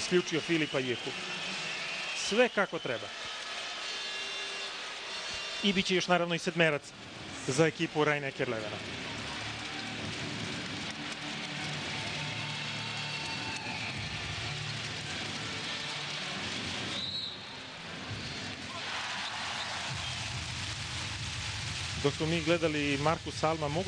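A large crowd cheers and roars in a big echoing hall.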